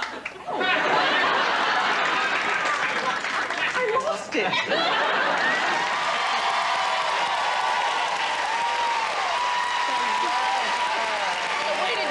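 A studio audience applauds and cheers.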